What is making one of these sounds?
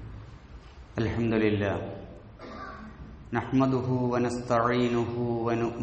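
A man speaks with emphasis into a microphone.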